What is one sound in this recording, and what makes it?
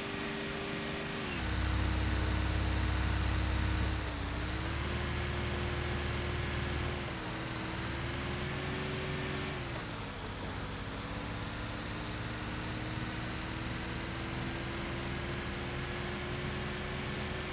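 Tyres rumble on pavement.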